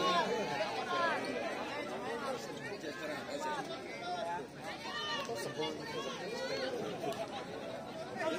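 A crowd of young men shouts and cheers loudly outdoors.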